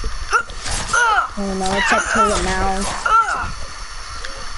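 Creatures shriek and wail in harsh, rising and falling cries.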